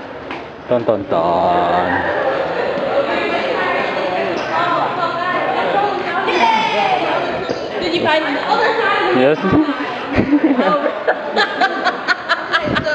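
A crowd of people chatters in a busy room.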